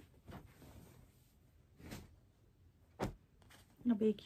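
Cloth rustles and swishes as hands handle it.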